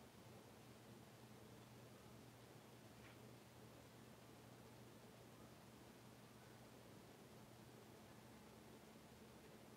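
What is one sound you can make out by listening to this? A wooden stick scrapes softly across a hard glossy surface.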